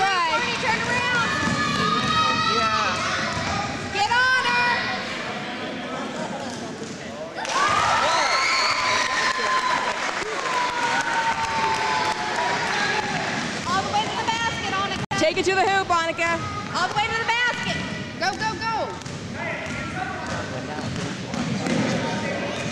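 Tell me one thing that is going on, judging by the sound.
Children shout and cheer in a large echoing gym.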